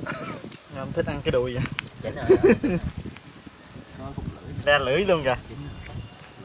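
Several men talk casually up close, outdoors.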